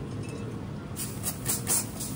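A spray bottle spritzes liquid in short bursts.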